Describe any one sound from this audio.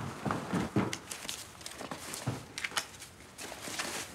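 Paper-wrapped bundles of banknotes rustle in hands.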